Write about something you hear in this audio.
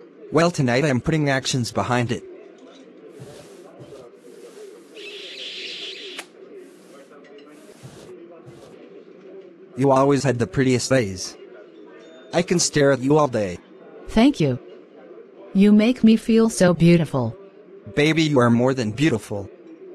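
A man speaks calmly and warmly.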